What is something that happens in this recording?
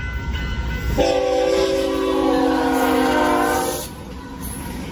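A train horn blares loudly close by.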